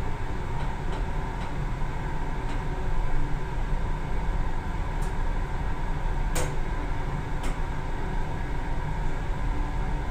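An elevator hums and rumbles steadily as it moves.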